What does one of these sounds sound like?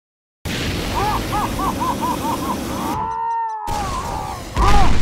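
A giant winged creature lets out high, wavering shrieks.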